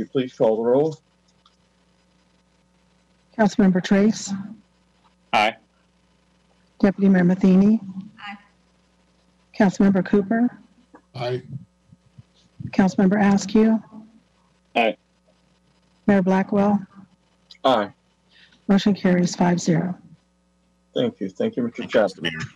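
A middle-aged man speaks calmly through an online call, in short bursts with pauses.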